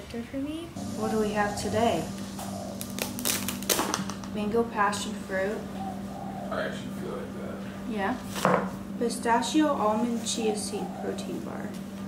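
A paper bag rustles and crinkles as items are pulled out.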